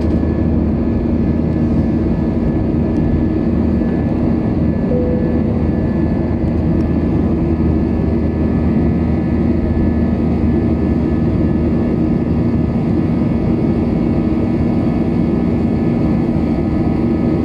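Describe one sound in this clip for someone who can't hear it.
Wind rushes past a plane's cabin in a low, steady roar.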